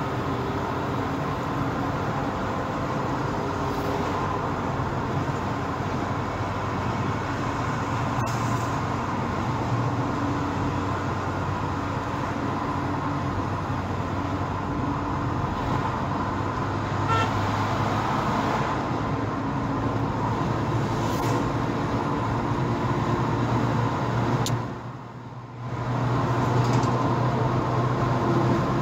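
Tyres roar steadily on the road from inside a moving car.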